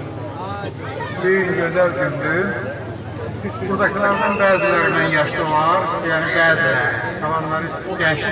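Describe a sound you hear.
An older man speaks loudly into a microphone through a loudspeaker.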